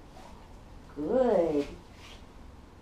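A woman close by gives a dog a command in a raised, sing-song voice.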